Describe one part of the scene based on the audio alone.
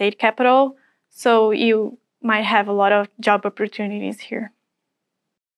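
A young woman speaks calmly and clearly, close to a microphone.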